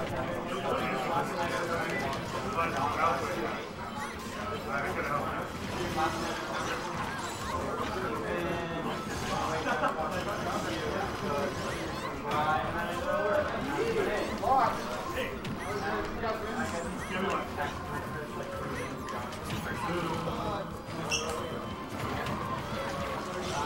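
Video game punches, slashes and energy blasts crack and whoosh rapidly.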